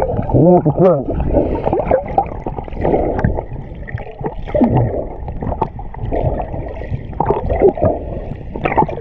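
Water sloshes and bubbles close by, heard from underwater.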